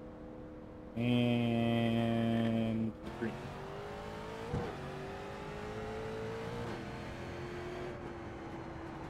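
A race car engine drones and changes pitch as it speeds up and slows down.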